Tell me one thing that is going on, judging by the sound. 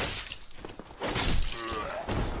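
A sword strikes a body with a heavy thud.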